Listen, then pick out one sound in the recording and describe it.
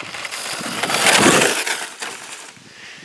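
A toy car's electric motor whirs as it speeds across asphalt.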